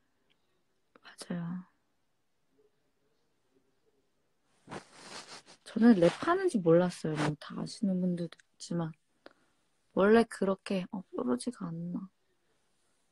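A young woman speaks softly and close up.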